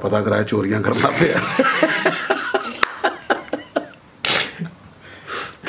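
A second man laughs heartily into a close microphone.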